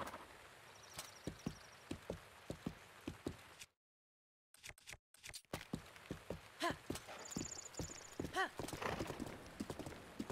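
Horse hooves pound steadily at a gallop.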